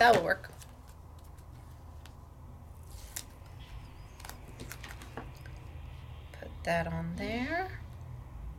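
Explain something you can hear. Stiff paper card rustles and taps softly as hands handle it.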